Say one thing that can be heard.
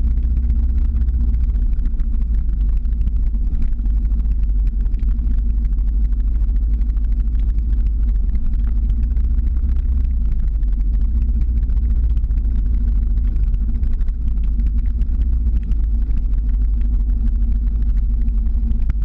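Skateboard wheels rumble steadily on asphalt.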